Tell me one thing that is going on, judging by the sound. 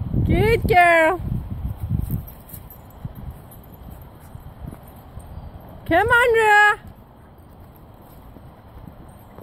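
A dog trots along a dirt path.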